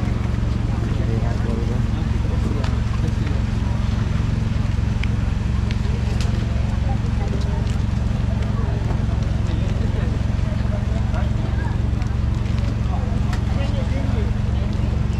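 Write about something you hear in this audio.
A crowd chatters and murmurs all around outdoors.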